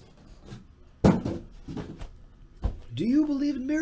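Boxes thud as they are set down on a table.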